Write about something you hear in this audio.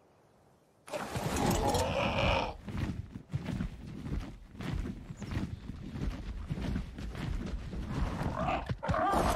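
Large leathery wings beat with a heavy, rushing whoosh.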